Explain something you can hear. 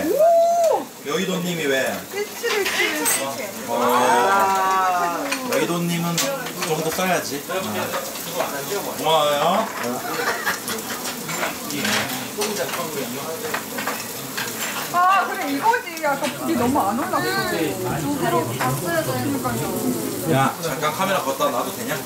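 Dishes and chopsticks clink on a table.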